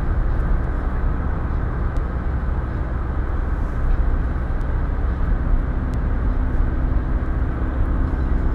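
A car's engine and tyres rumble on asphalt, heard from inside the car.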